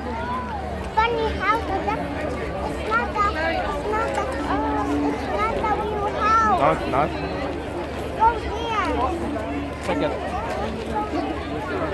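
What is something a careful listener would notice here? A young child talks excitedly close by.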